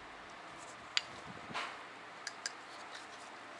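Metal parts clink and knock against each other as they are handled.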